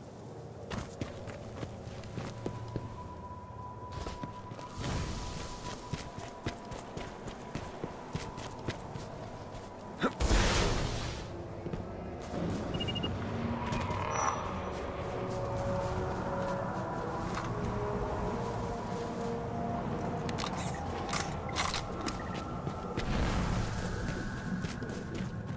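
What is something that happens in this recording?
Footsteps crunch on dry dirt and gravel at a steady walking pace.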